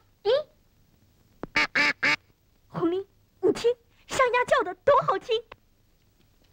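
A boy talks cheerfully, close by.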